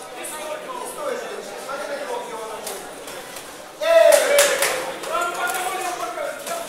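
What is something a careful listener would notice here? A crowd of men and women shouts and cheers, swelling loudly partway through.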